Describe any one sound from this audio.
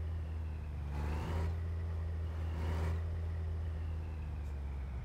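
A truck engine revs up briefly as the truck reverses.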